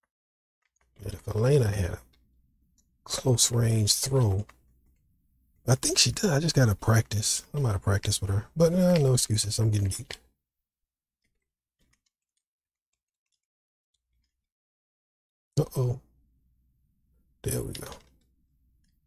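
A man talks calmly into a microphone, in short bursts with pauses.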